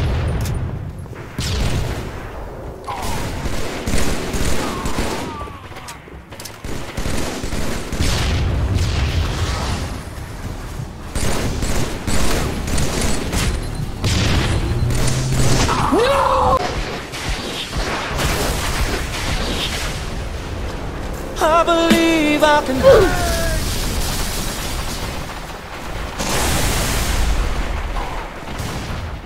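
Rifle gunfire cracks in rapid bursts.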